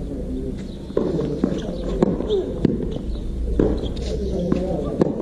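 A racket strikes a tennis ball with sharp pops.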